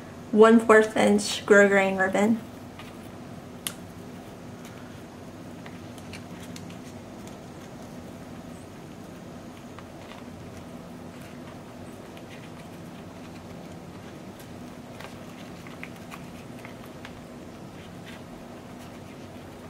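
Paper and ribbon rustle softly as hands tie a bow.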